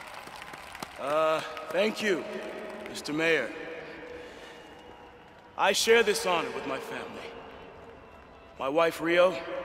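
A middle-aged man speaks calmly and formally into a microphone.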